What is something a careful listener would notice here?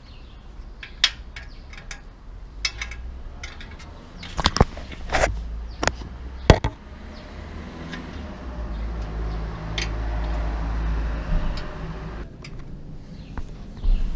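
Metal tools click and clink against a bicycle wheel hub.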